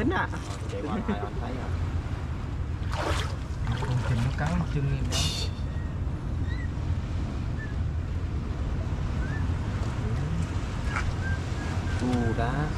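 Hands splash and swish through shallow water.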